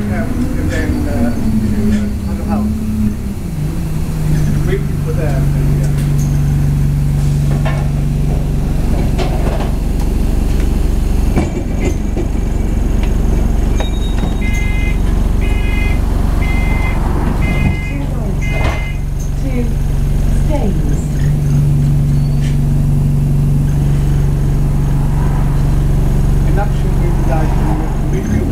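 A vehicle engine hums steadily while driving, its pitch shifting now and then.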